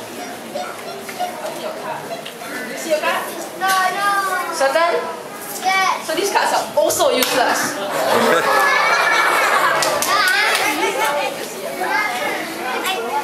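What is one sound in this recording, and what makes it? Young boys talk loudly near a microphone.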